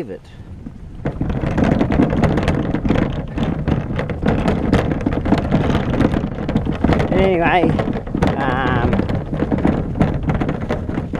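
Plastic bin wheels rumble and rattle over a rough driveway.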